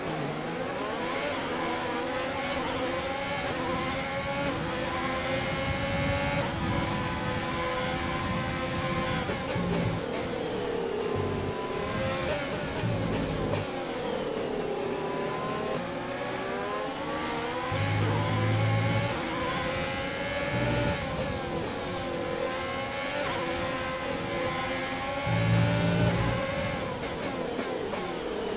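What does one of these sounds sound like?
A racing car engine screams at high revs, rising and falling as gears shift.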